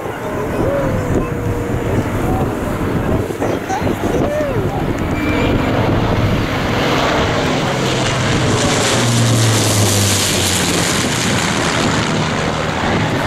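A Lancaster bomber's four Merlin piston engines drone and grow louder as it passes overhead.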